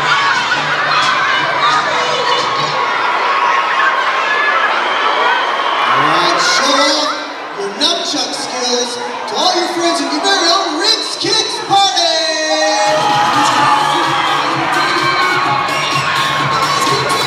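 A crowd of children chatters and cheers.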